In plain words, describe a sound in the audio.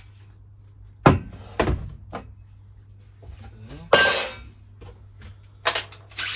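Objects knock and clatter nearby.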